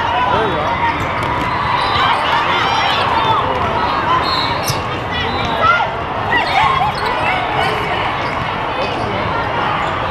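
Young women shout and call out to each other on the court.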